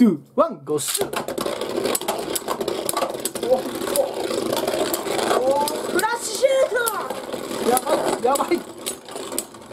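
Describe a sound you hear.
Two spinning tops whir and scrape around a plastic arena.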